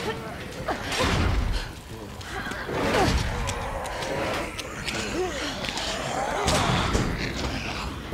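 A metal gate rattles and clanks as it is shaken.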